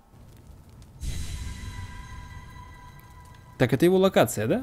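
A soft shimmering chime rings out and slowly fades.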